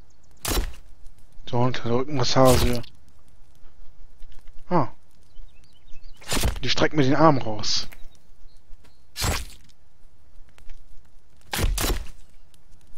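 An axe strikes a body with heavy, wet thuds.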